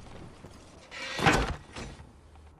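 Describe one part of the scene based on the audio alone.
A cannon fires with a loud boom.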